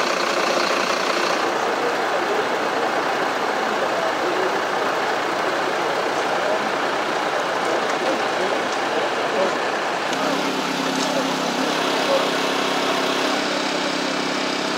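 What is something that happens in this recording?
A fire engine idles with a low, steady rumble.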